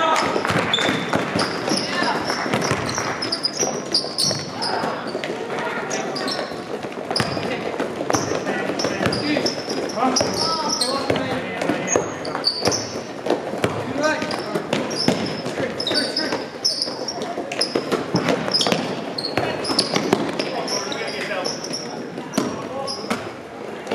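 Young players shout and call out across an echoing gym.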